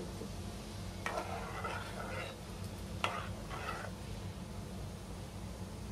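A metal spoon stirs thick porridge in a pot, clinking against the sides.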